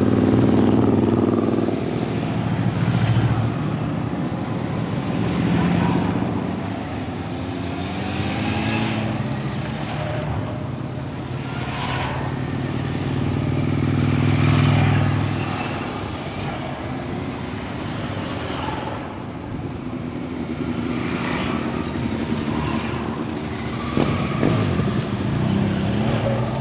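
A long column of motorcycles rides past one after another, engines rumbling.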